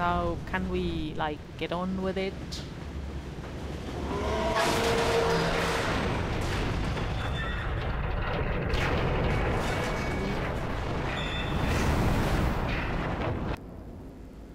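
A locomotive rumbles along.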